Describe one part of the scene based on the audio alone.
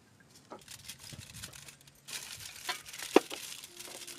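Paper crinkles and rustles in someone's hands.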